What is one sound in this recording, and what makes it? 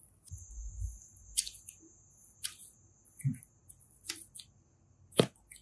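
Soft clay squishes and squelches between fingers.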